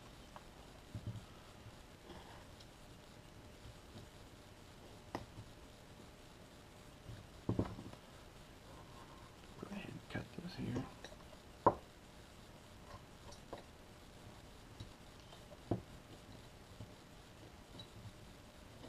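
A carving knife scrapes and shaves wood in short strokes.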